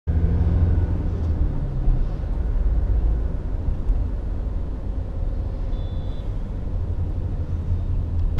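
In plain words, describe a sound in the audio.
A vehicle's engine rumbles steadily from inside as it drives along a road.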